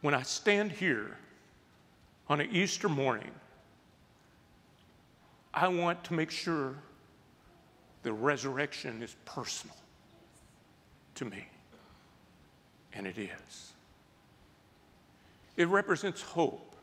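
A middle-aged man speaks calmly and slowly into a close microphone, pausing often.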